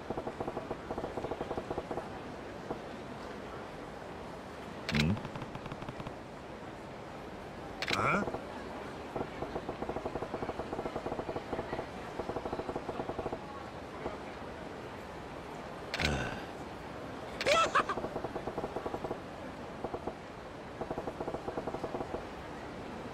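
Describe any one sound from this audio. Rapid soft beeps tick along as lines of dialogue text print out.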